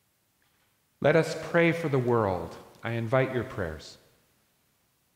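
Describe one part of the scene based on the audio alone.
An elderly man speaks loudly through a microphone in a large echoing room.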